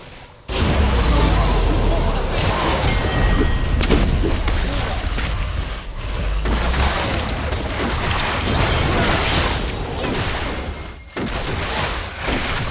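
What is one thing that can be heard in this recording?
Magic blasts, whooshes and impacts crash together in a fast, busy fight.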